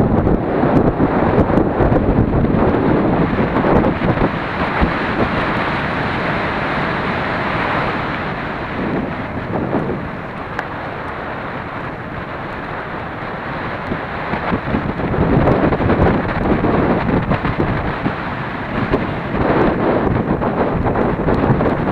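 Mountain bike tyres crunch and rattle over a gravel road on a fast descent.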